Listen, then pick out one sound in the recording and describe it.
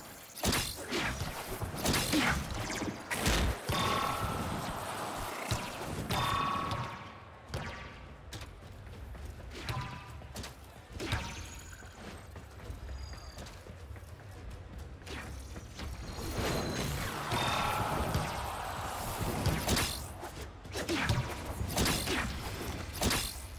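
Blades whoosh and strike with sharp, ringing impacts, again and again.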